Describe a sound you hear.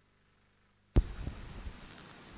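A microphone thumps loudly as it is handled close up.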